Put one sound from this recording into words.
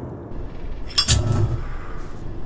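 A metal vent grate clanks as it is pulled loose.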